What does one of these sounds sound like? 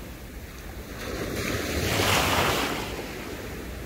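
Wind gusts across open water outdoors.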